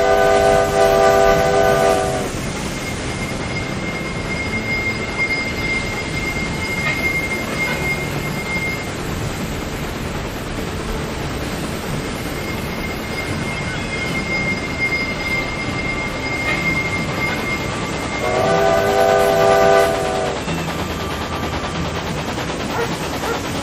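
A steam locomotive rumbles steadily along the rails.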